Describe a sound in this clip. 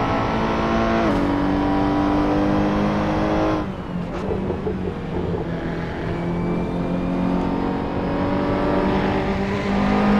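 A racing car engine roars at high revs, drops in pitch as it shifts gear, eases off, then builds up again.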